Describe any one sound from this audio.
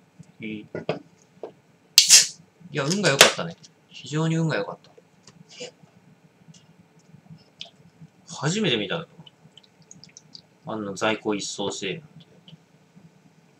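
Beer pours from a can and fizzes into a glass.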